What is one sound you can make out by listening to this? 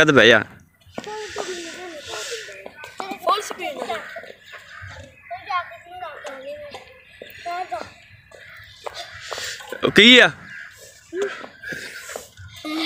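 A young boy talks with animation nearby.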